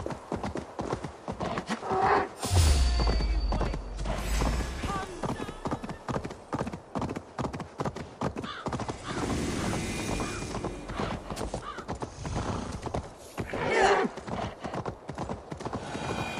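Hooves thud steadily on frozen ground.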